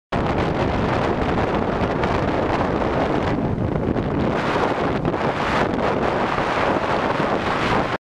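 Strong wind roars steadily against a microphone.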